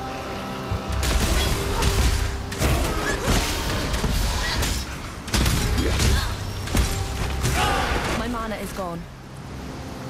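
Weapons slash and strike in a fierce, clashing fight.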